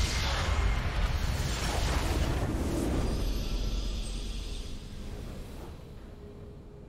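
A loud explosion roars and rumbles, then slowly fades.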